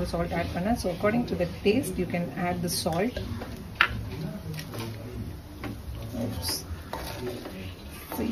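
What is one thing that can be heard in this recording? A wooden spatula scrapes and stirs rice in a metal pan.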